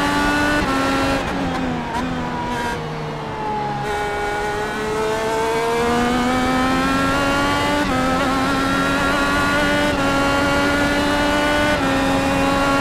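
A racing car engine whines loudly, dropping in pitch while braking into a turn and then rising again as it speeds up through the gears.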